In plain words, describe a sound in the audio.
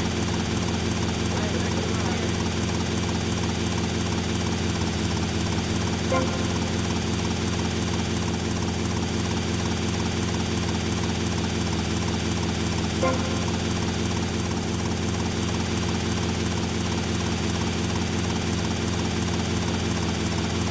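A helicopter's rotor whirs and drones steadily.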